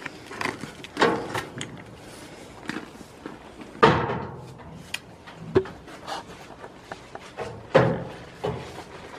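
Goats bleat loudly close by.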